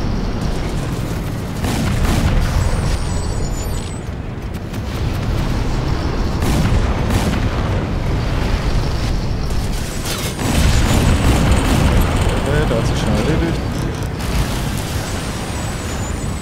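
Tyres splash through shallow water.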